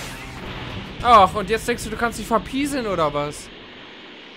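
Energy blasts burst sharply.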